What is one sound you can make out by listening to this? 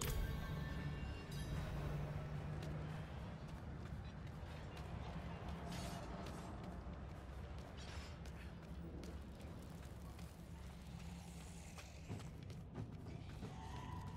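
Magic blasts crackle and whoosh in short bursts.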